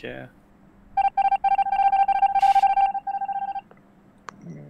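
Electronic game tones beep rapidly and then stop.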